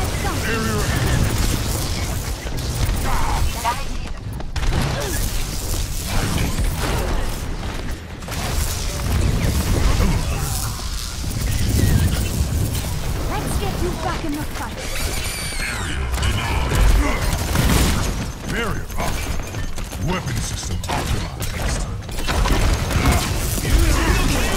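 An electric beam weapon crackles and buzzes.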